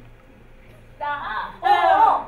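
Young women laugh loudly together.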